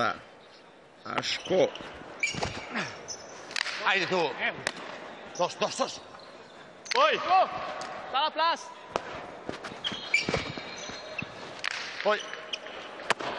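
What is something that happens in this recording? A hard ball smacks against a wall with an echo in a large hall.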